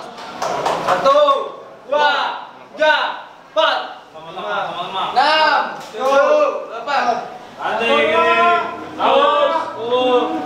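Young men chant together in loud, rhythmic bursts.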